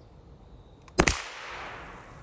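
A rifle fires a single sharp shot outdoors.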